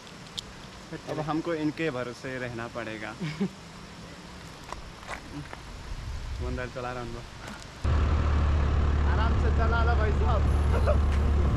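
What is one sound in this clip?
A young man talks cheerfully and close by.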